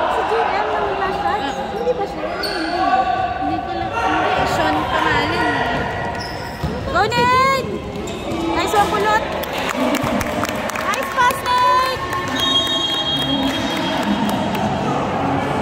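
Sneakers squeak sharply on an indoor court floor in an echoing gym.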